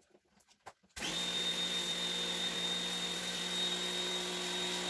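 A pressure washer motor starts up and hums steadily with a high whine.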